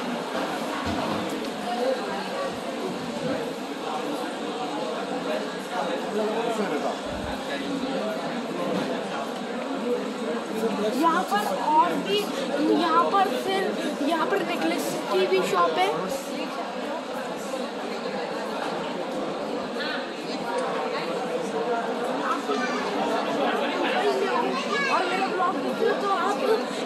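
A crowd murmurs and chatters in a busy, echoing hall.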